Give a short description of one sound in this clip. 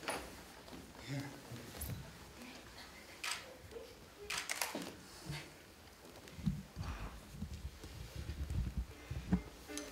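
Bodies thump softly against a hard floor.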